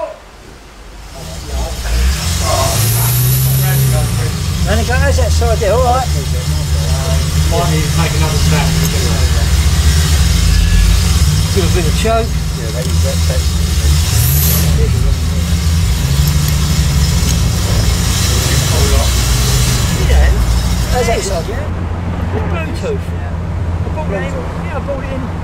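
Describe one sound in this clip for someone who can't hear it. A car engine starts and idles with a deep rumble.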